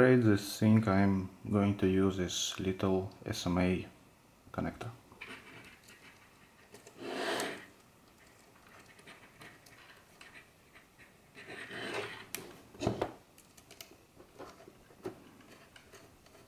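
Small metal connectors click and scrape as they are screwed together by hand.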